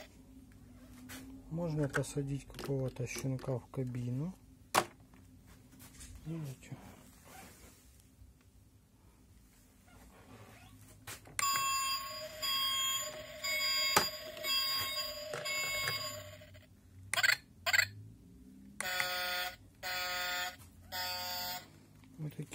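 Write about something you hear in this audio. Plastic toy parts click and clack as they are handled.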